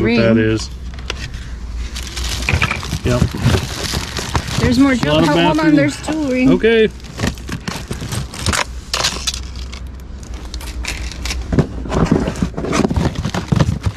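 Items clatter and rustle as hands rummage through a cardboard box.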